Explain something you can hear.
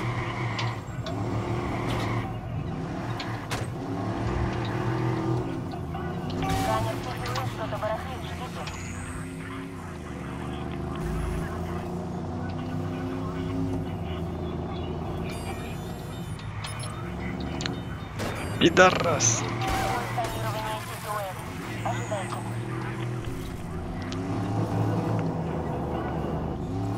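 A car engine roars and revs steadily.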